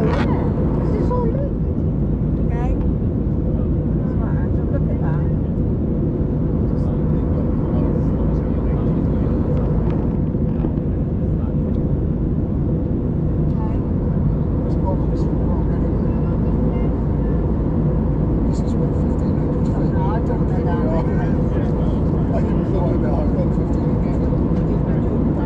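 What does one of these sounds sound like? A jet airliner's engines roar in a steady, deep drone heard from inside the cabin.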